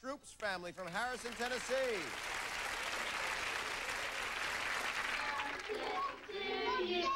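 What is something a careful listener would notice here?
A studio audience laughs and applauds.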